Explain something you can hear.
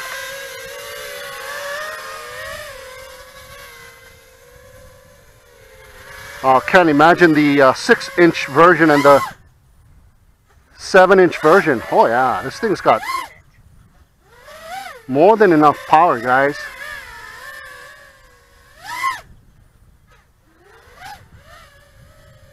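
A small drone buzzes overhead, its whine rising and falling in pitch.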